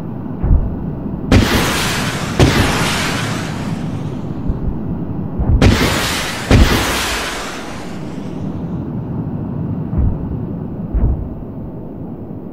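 Large explosions boom, each followed by a long rolling rumble.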